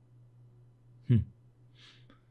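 A book page flips over.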